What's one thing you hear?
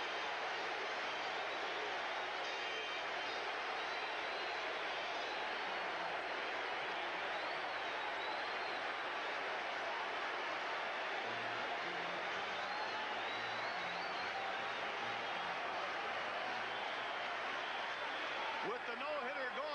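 A large crowd cheers and roars in a stadium.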